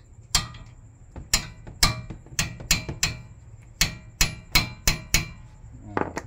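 A hammer strikes a metal wrench with sharp, ringing clangs.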